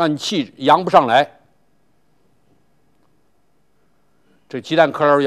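An elderly man speaks calmly and clearly into a microphone, pausing between phrases.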